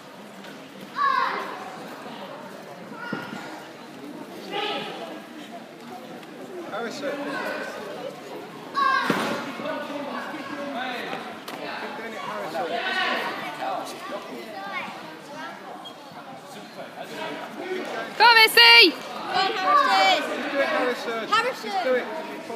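Young children shout sharply in a large echoing hall.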